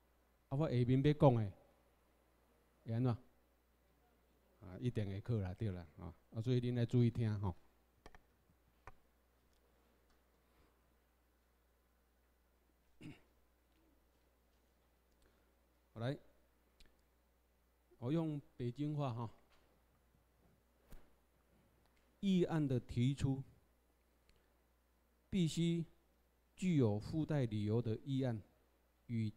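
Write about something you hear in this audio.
A man speaks calmly into a microphone in bursts with pauses, heard through a loudspeaker in a room.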